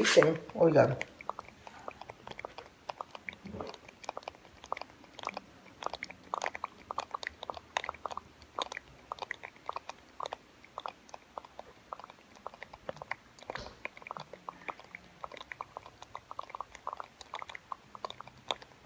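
Hard crab shells click and scrape softly up close.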